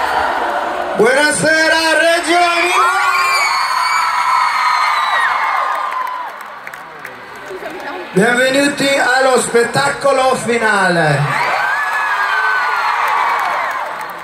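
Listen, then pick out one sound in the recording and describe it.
A young man sings into a microphone over loud loudspeakers.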